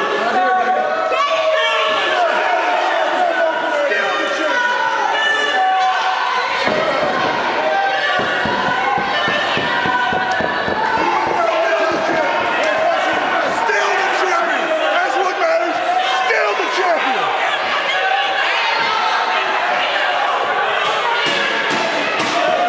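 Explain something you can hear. A man shouts with excitement nearby.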